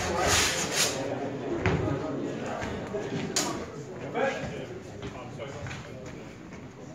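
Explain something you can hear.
People chat in the background of a large echoing hall.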